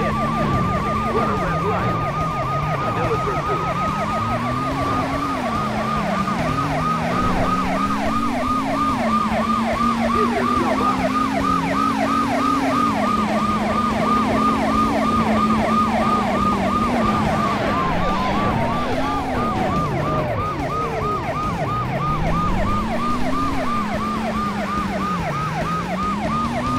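A bus engine roars and revs up and down.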